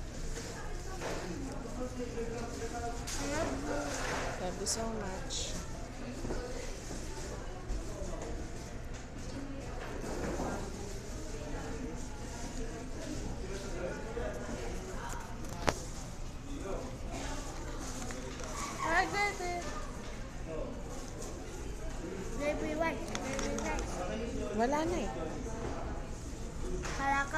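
A young girl talks close by.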